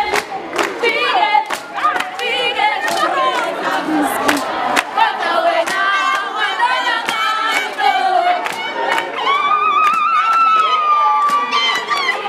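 Hands clap in a steady rhythm.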